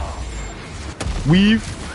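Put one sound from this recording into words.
Gunfire and a blast boom loudly.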